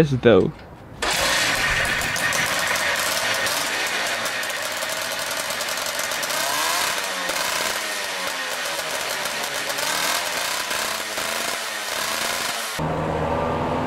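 A small two-stroke engine runs with a loud buzzing clatter.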